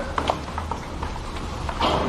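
Footsteps climb a metal staircase.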